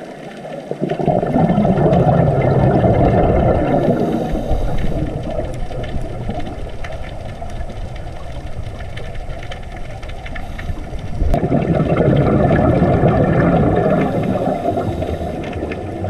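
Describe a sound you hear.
Scuba divers' exhaled bubbles gurgle and rumble underwater.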